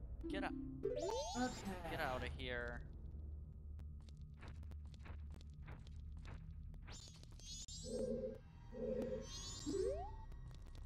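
Bright chiming game sound effects ring out.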